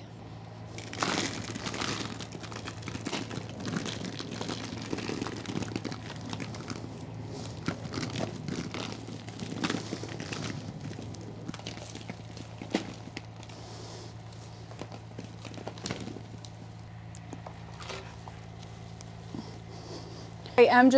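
Soil crumbles and rustles as a root ball is handled.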